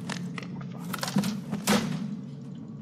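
A metal switch clicks.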